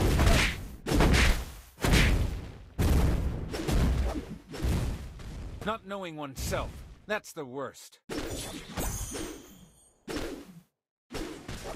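Game spell and weapon effects burst and clash in quick bursts.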